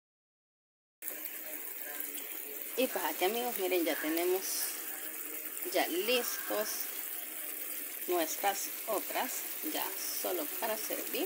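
Food sizzles and bubbles in a hot pan.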